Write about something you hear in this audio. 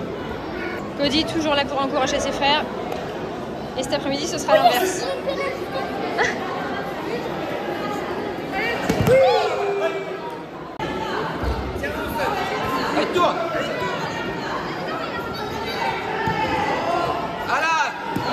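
Young children shout and cheer excitedly nearby.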